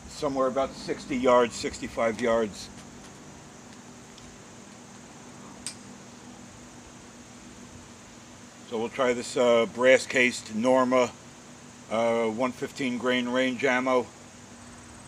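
A middle-aged man talks calmly close by, outdoors.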